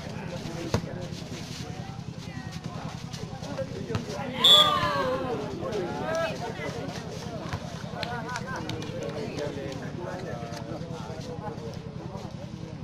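Young men shout and call out loudly.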